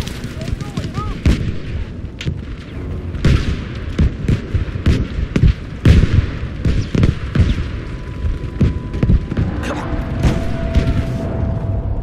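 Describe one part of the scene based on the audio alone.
Artillery shells explode nearby with heavy, rumbling booms.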